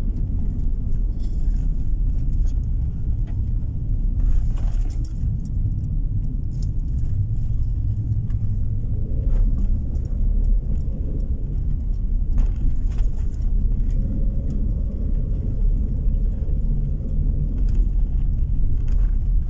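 Tyres rumble on rough asphalt.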